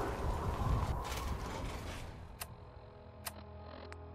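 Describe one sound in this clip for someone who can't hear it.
Short electronic clicks sound.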